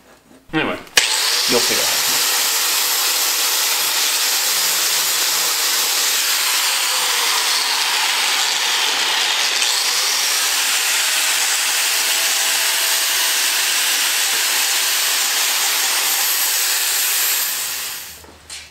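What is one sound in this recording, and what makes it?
An angle grinder whines steadily as it grinds metal.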